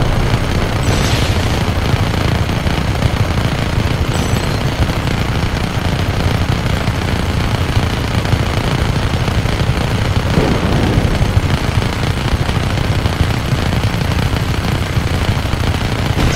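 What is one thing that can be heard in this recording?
Helicopter rotors thump steadily overhead.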